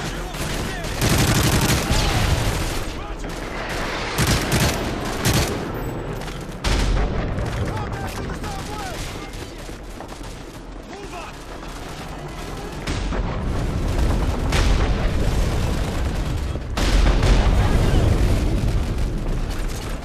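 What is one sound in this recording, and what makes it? Rifles fire in rapid bursts close by.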